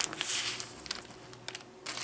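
Foil crinkles and rustles under pressing hands.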